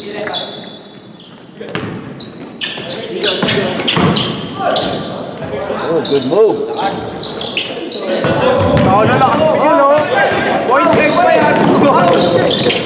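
Young men shout to each other across an echoing gym.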